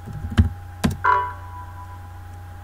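A computer error chime sounds once.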